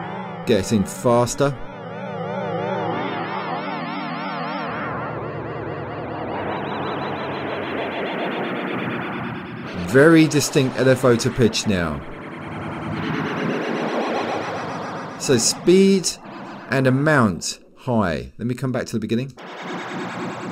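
Electronic music plays with a warbling, wavering pitch effect.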